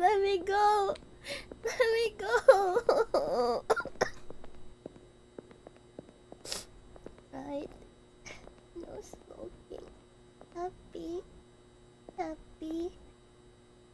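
A young woman talks with animation in a high voice, close to a microphone.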